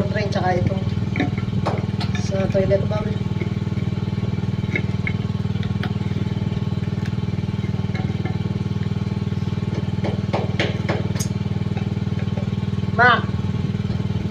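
Plastic pipe fittings click and knock as they are handled.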